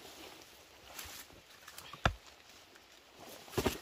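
A heavy stone thuds as it is pulled loose from the soil.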